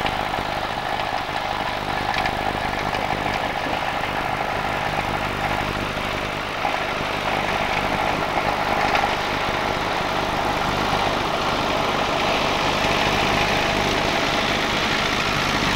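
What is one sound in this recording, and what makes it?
A tractor engine chugs steadily as it approaches and grows louder.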